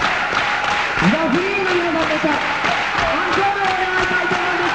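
A man sings powerfully into a microphone.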